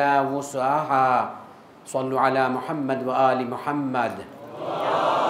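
A man speaks in a melodic, chanting voice through a microphone.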